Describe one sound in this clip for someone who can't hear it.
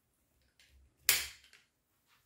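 A metal click sounds as an air rifle is handled.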